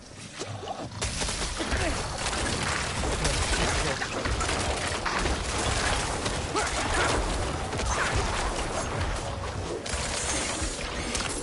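Weapons clash and magic bursts crackle in a fierce fight.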